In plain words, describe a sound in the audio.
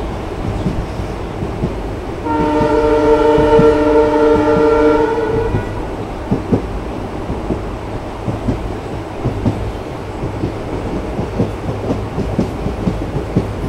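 A train rumbles along the track with wheels clacking over rail joints.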